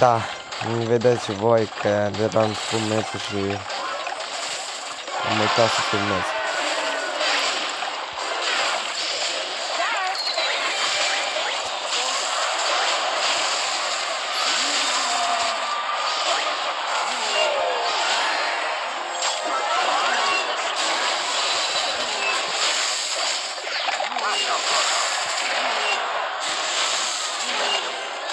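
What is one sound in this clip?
Game music and battle effects play throughout.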